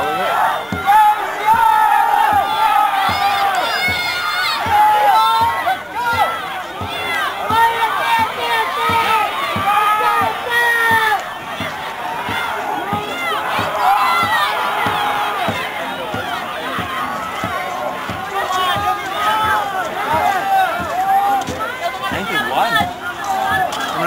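A crowd of men and women shouts and cheers loudly outdoors.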